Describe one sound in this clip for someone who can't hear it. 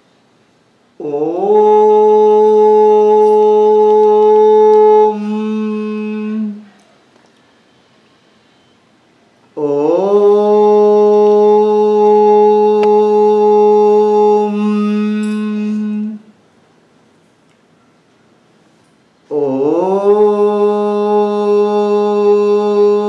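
A man chants long, steady drawn-out tones up close, three times with pauses between.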